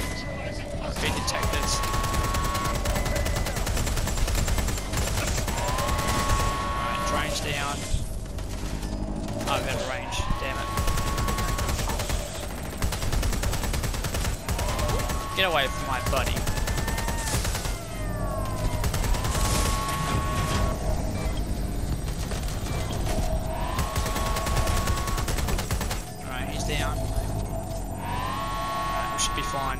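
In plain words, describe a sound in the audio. Electronic beeps chirp in rising tones.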